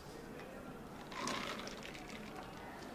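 Milk pours into a bottle.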